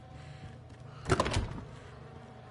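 A door swings open with a heavy thud.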